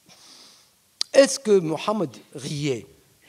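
A middle-aged man speaks calmly into a microphone in a large hall.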